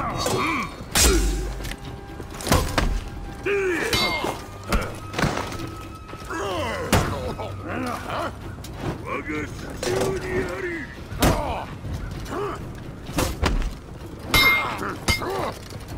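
Metal weapons clash and clang sharply.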